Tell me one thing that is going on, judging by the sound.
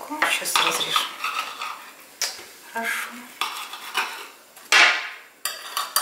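A knife scrapes and clinks against a plate.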